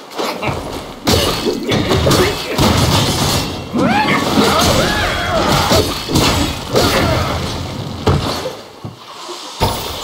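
Blades clash and clang in a fight.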